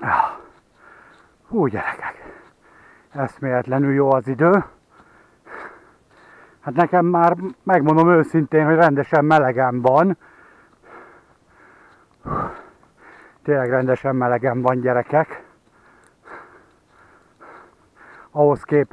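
Footsteps crunch steadily on a dry, leafy dirt path.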